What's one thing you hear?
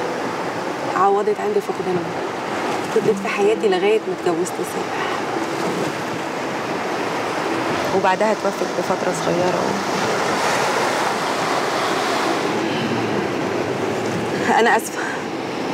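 A woman speaks in a tearful, strained voice close by.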